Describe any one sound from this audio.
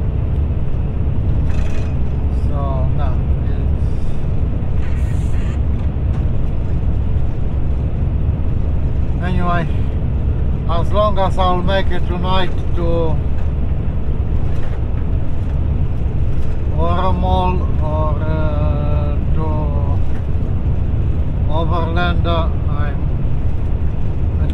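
A vehicle engine drones steadily.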